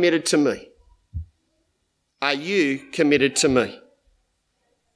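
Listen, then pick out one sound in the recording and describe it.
A middle-aged man speaks calmly into a microphone, reading out.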